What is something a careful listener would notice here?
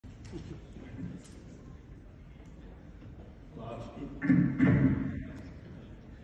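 A man speaks over a loudspeaker in a large room.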